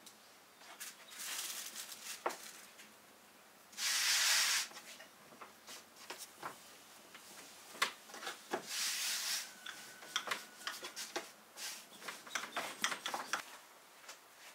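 A rolling pin knocks and rolls across a wooden board.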